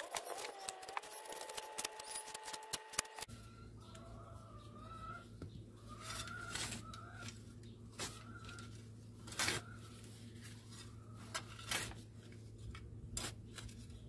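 A shovel scrapes and crunches into soft soil.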